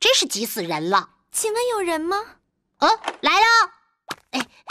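A high-pitched cartoonish voice speaks with animation, close up.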